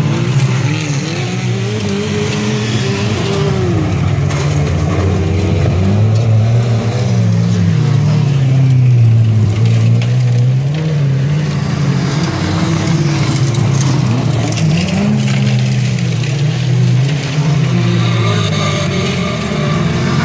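Several racing car engines roar and rev loudly nearby.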